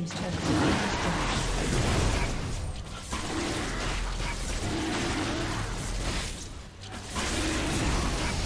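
A large creature's attacks thud and crash against a stone structure.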